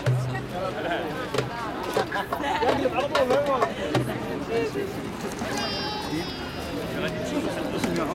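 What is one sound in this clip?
A man plucks an oud outdoors.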